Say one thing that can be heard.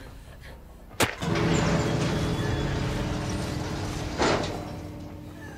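An electric machine buzzes and crackles loudly.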